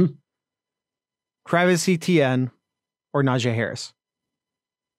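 A man speaks calmly and closely into a microphone, heard as if over an online call.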